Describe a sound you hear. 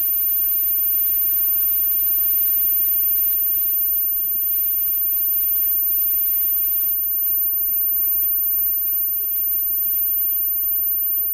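Electric guitars play loudly in a live band.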